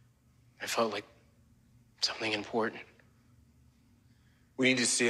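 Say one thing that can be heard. A man speaks close by in short, quiet phrases with pauses between them.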